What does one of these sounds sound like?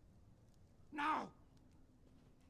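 A man yells a sharp command.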